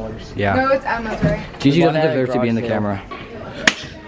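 Teenage girls talk and laugh close by.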